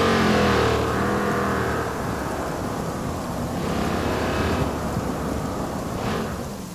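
A car engine roars loudly as the car speeds along.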